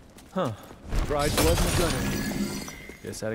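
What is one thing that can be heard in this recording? A crystal shatters with a burst of bright, ringing chimes.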